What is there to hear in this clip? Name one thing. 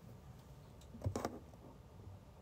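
A hand bumps and rubs close against the microphone.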